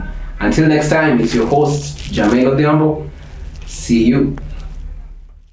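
A young man speaks calmly close to a microphone.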